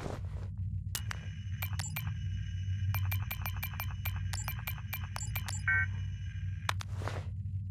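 A wrist device chirps with rapid electronic beeps.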